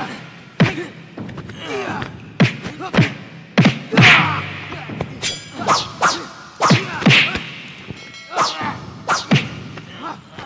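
Heavy blows thud again and again in a fight.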